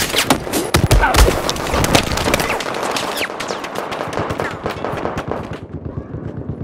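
Gunshots crack in rapid bursts close by.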